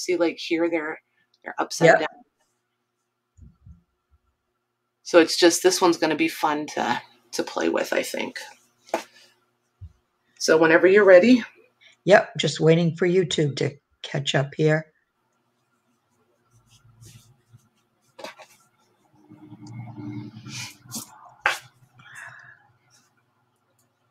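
Cloth rustles softly as hands fold and smooth it.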